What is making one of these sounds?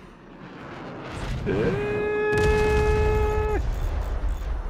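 Rockets launch in a rapid volley with a rushing roar.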